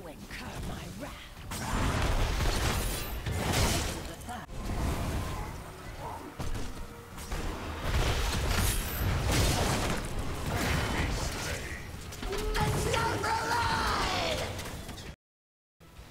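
Game spell effects and explosions crackle and boom in quick bursts.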